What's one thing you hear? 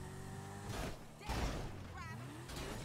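A car crashes and flips over with a loud bang.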